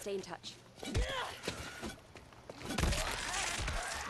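A blunt weapon thuds into flesh with a wet splatter.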